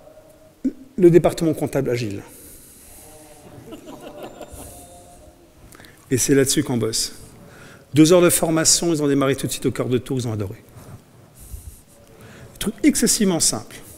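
A middle-aged man speaks with animation in a room with a slight echo, in short bursts with pauses.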